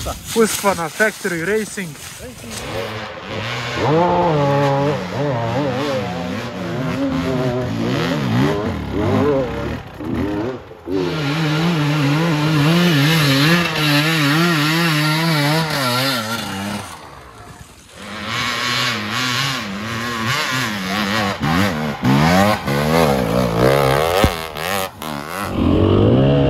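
Dirt bike engines rev hard and whine up and down close by.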